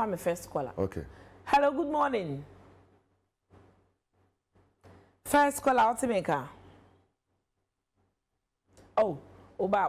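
A woman speaks with animation into a close microphone, pausing between phrases.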